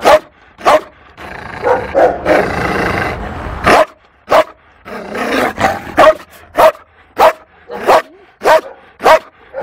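A bear barks loudly and repeatedly at close range.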